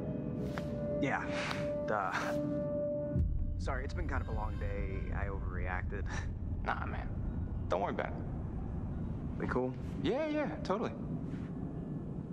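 A young man speaks quietly and hesitantly.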